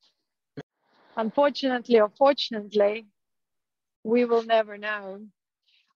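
A young woman speaks warmly and close to the microphone.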